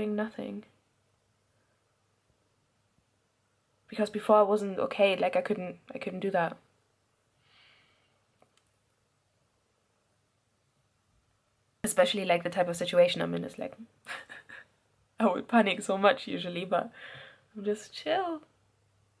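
A young woman speaks expressively close to the microphone, with pauses.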